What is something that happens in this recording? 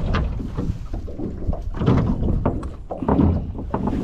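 A fish flaps and slaps against a plastic deck.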